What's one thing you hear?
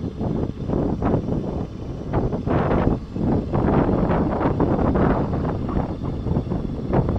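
Strong wind buffets and rumbles loudly outdoors.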